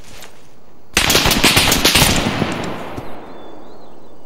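Gunfire rattles in a rapid burst and echoes away.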